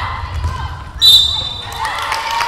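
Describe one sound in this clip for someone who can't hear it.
A referee blows a short, sharp whistle.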